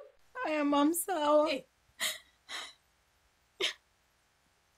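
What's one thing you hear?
A young woman speaks softly into a phone, close by.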